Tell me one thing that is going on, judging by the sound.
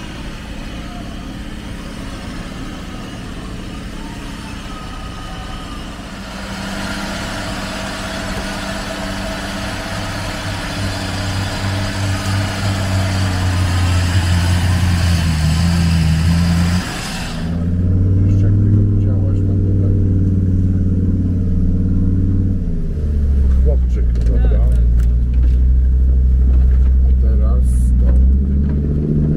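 An off-road vehicle's engine idles and revs loudly.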